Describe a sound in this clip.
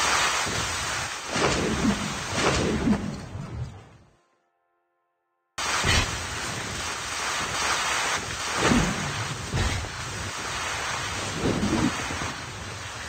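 Skateboard wheels roll and rumble over the ground.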